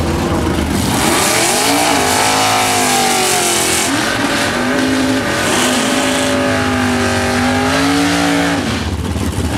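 Tyres screech and squeal as they spin in place.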